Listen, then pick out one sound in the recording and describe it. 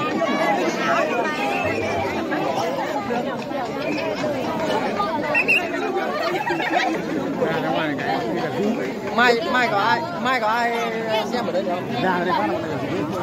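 A dense crowd of men and women chatters and shouts loudly close by, outdoors.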